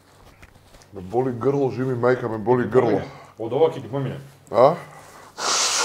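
A second man talks calmly close to a microphone.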